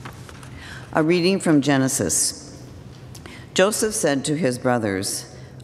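An older woman reads aloud through a microphone.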